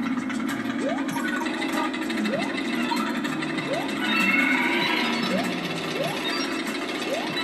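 A platform video game's rising jump sound effect plays from a television.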